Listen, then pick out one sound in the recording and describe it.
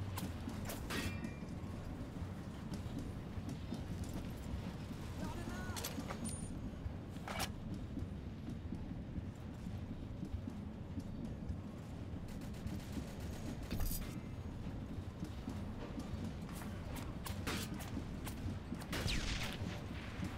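Rifle shots crack sharply now and then.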